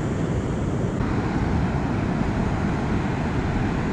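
Waves break and wash up onto a beach.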